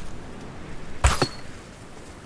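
A sling snaps as a stone is shot.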